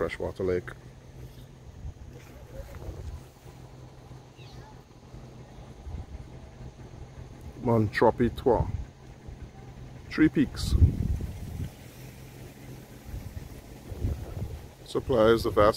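Tall grass rustles in the wind.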